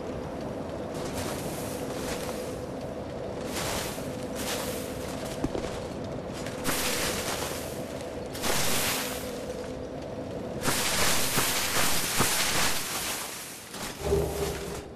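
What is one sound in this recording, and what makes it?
Armoured footsteps clank along a stone floor.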